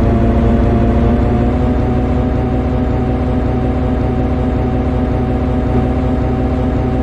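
An electric locomotive's motors hum steadily as the train runs.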